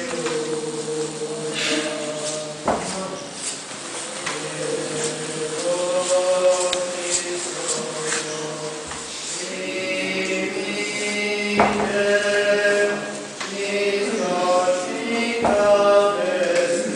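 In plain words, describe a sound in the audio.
A choir of men and women sings slow, sustained chant in a large echoing hall.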